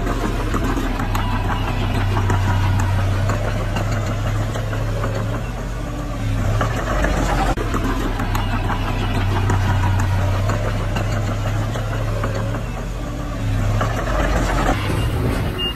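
A bulldozer engine rumbles steadily.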